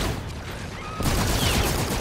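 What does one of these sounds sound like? An automatic rifle fires bursts.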